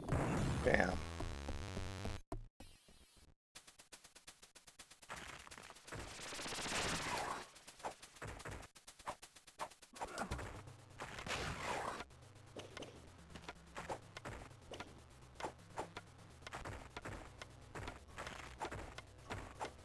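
Retro video game music and sound effects play.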